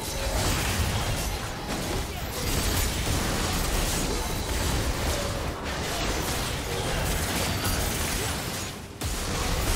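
Magic blasts and weapon hits clash in a busy video game battle.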